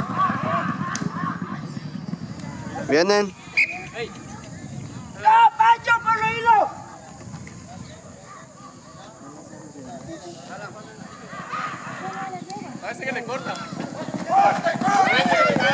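A crowd of men shout and cheer excitedly outdoors.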